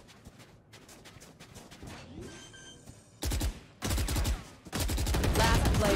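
A submachine gun fires in short bursts.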